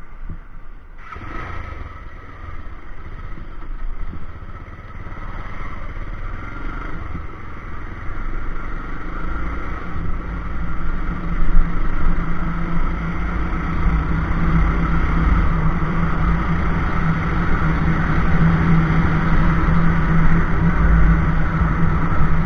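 Wind rushes past as a motorcycle rides along a road.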